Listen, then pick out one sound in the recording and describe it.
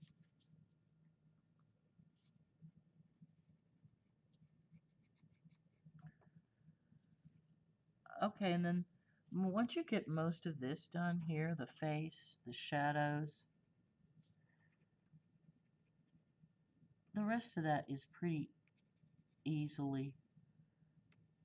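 A crayon scratches softly on paper.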